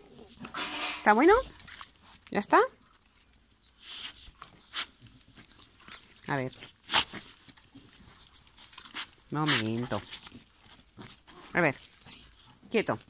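A dog whines and yelps excitedly up close.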